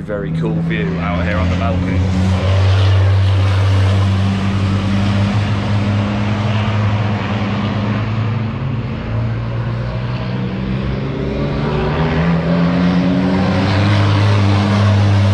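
Race car engines drone loudly and steadily nearby.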